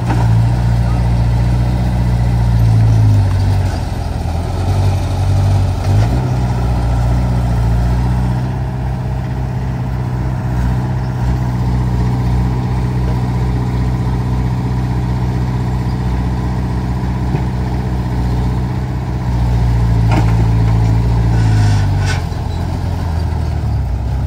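Excavator diesel engines rumble and rev steadily close by.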